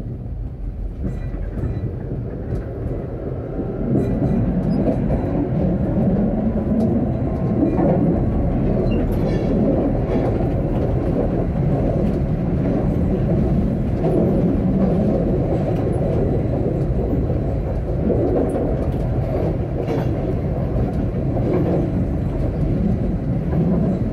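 Tram wheels clack over the track joints.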